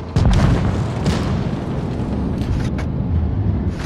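A tank gun fires with a sharp boom.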